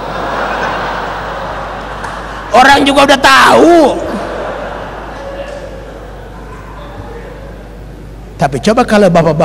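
A crowd laughs.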